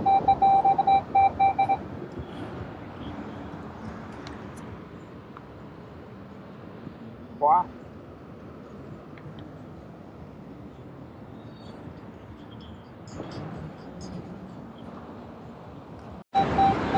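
A metal detector beeps in rapid, steady pulses.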